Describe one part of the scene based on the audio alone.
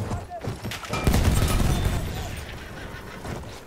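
A loud explosion booms nearby.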